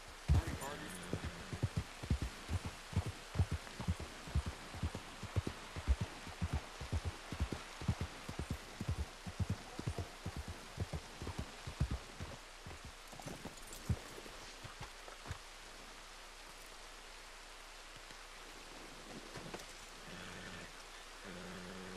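Rain falls with a steady hiss.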